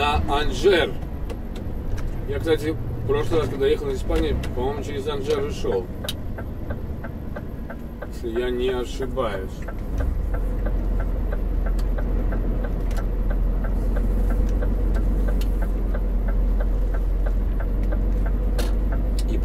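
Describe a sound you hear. A vehicle engine hums low and steady while driving.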